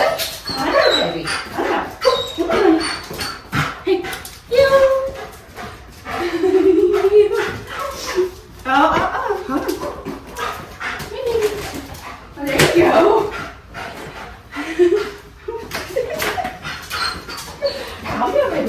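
A dog's paws patter on a hard floor as it jumps.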